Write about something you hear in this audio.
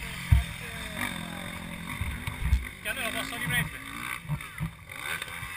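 A motorcycle engine revs and whines as a dirt bike rides past at a distance.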